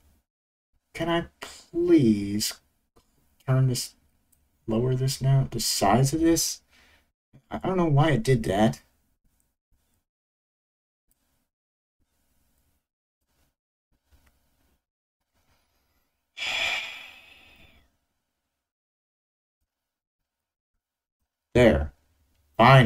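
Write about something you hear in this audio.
A man speaks calmly into a microphone, in short bursts.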